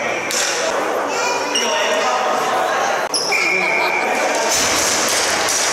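Players shout and call out in a large echoing arena.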